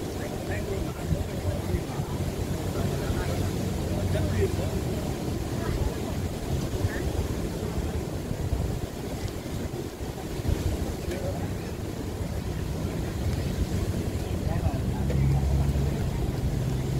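Waves wash gently onto a shore in the distance.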